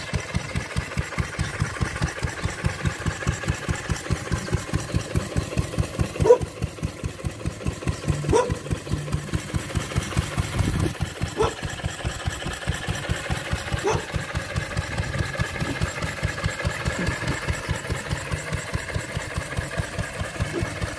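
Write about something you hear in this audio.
An old stationary engine chugs steadily with a rhythmic thump, close by, outdoors.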